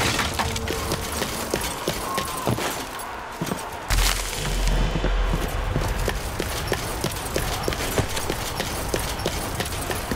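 Heavy footsteps crunch steadily over ground.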